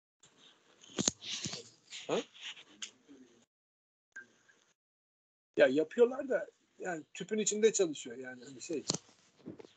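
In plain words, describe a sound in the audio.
An older man lectures calmly over an online call.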